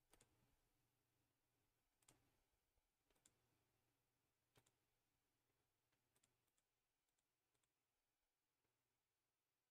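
Short game sound effects click and chime as cards are played.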